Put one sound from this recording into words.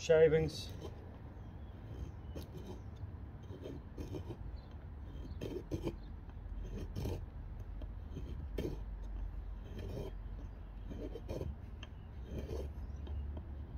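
A knife blade scrapes and shaves against a wooden stick in short strokes.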